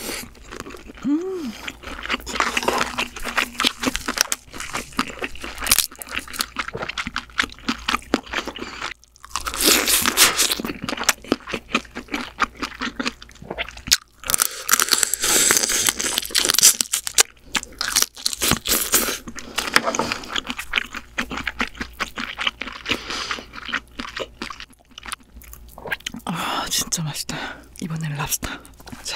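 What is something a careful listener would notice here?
A young woman hums with pleasure.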